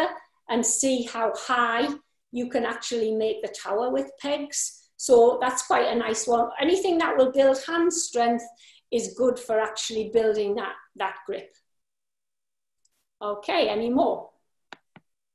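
A middle-aged woman speaks with animation into a nearby microphone, as if in an online call.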